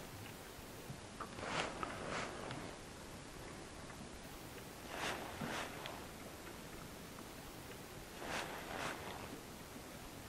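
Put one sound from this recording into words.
Water laps against the side of a small boat.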